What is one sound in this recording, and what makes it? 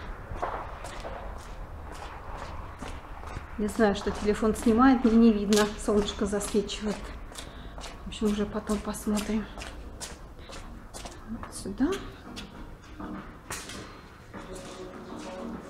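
Footsteps walk steadily along a hard floor.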